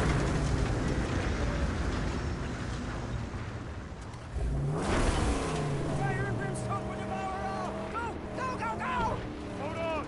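A car engine roars as a vehicle drives over rough ground.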